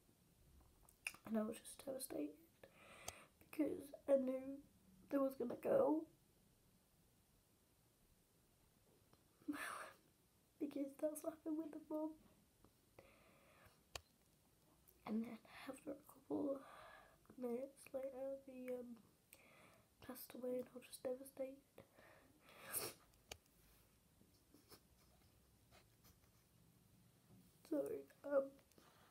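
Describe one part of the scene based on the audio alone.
A young girl talks close by, in short bursts with pauses.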